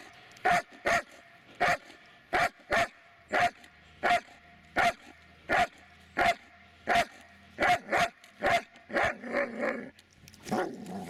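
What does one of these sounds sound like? A dog barks sharply again and again.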